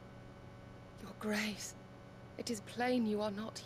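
A young woman speaks calmly and softly.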